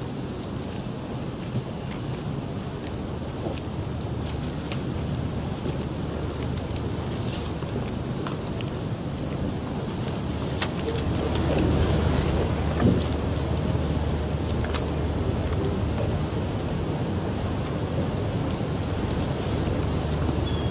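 A heavy carriage rumbles slowly along on its wheels.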